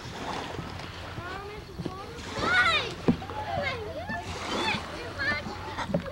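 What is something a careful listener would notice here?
Small waves lap gently against wooden pilings.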